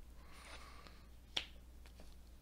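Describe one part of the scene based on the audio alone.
A card taps softly onto a tabletop.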